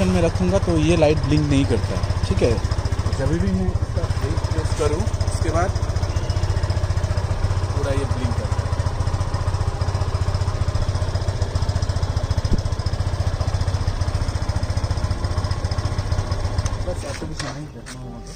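A motorcycle engine idles with a steady low throb.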